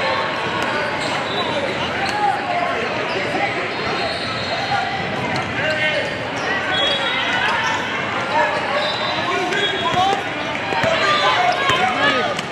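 Many voices of young people and spectators chatter in a large echoing hall.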